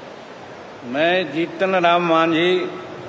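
An elderly man speaks into a microphone, reciting steadily.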